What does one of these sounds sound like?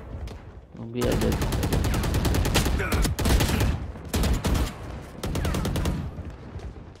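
A rifle fires rapid shots in quick bursts.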